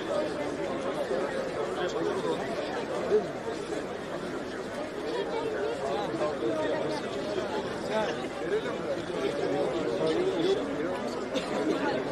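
Men nearby talk loudly over one another.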